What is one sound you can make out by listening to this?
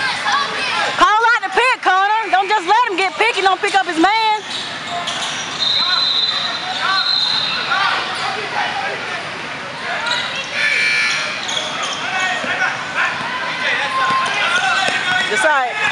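A crowd of young people chatter and shout in a large echoing hall.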